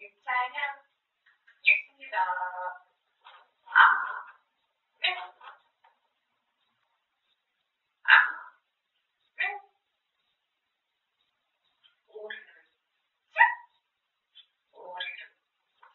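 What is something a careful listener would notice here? A parrot chatters and mimics speech in short, shrill bursts.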